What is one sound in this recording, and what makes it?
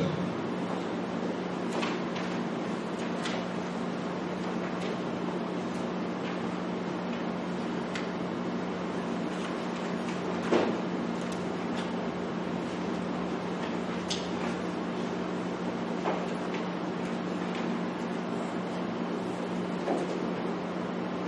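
An air conditioner hums steadily.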